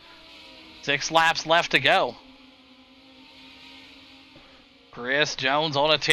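Racing car engines drone steadily.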